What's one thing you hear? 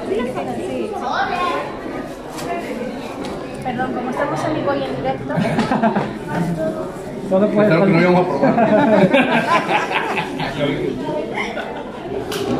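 Women talk and laugh nearby with animation.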